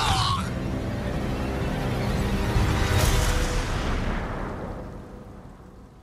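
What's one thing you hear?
Heavy rain pours down in a roaring storm, then fades away.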